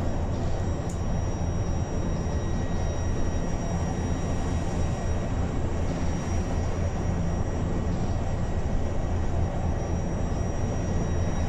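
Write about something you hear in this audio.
Tyres roll along the road with a steady rumble.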